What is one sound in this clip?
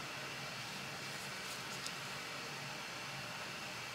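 A folding knife blade snaps open with a click.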